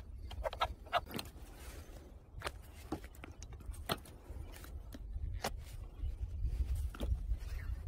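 Scissors snip through plant stems.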